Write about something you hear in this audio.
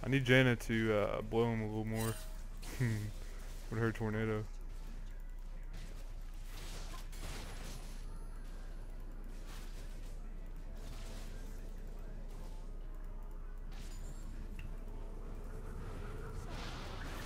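Game spells whoosh and crackle in a fight.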